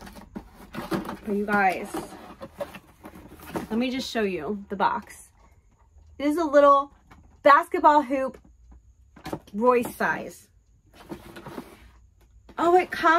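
Cardboard packaging rustles and scrapes.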